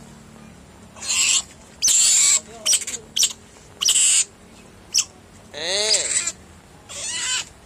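A small animal hisses in short bursts.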